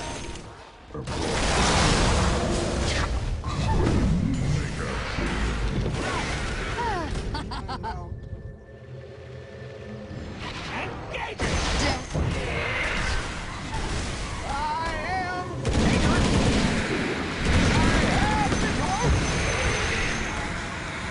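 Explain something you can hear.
Game battle effects clash and burst with spells and hits.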